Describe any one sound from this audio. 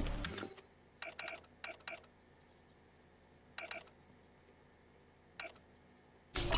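Short menu clicks and blips sound.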